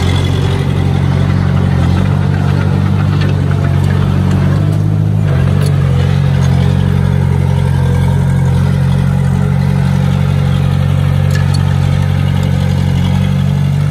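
Rocks and gravel crunch and scrape under a bulldozer's tracks and blade.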